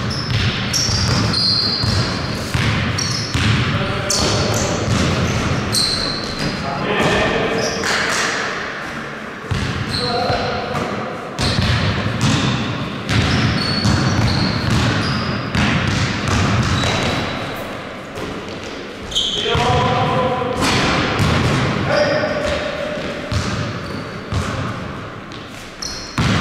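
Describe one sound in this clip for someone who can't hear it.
A basketball bounces on the floor in a large echoing hall.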